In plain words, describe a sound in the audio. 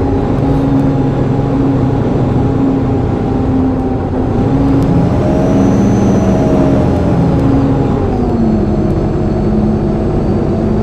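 A bus engine hums steadily, its pitch rising and falling as it drives along.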